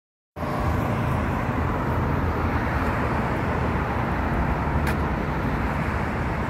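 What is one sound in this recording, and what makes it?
Traffic rumbles steadily on a nearby road.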